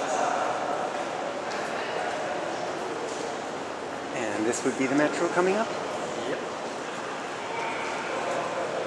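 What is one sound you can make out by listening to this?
A faint murmur echoes through a large, hard-walled hall.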